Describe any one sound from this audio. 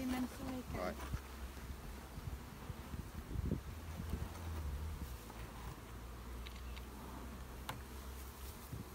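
Bees buzz around an open hive.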